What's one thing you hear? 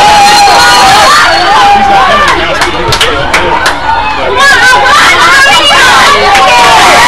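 A crowd of young people cheers and shouts loudly outdoors.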